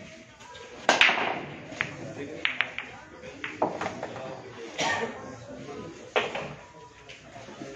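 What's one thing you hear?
Billiard balls clack against each other and roll across the table.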